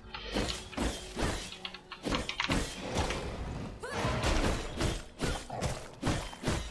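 Heavy weapon blows thud and crack one after another.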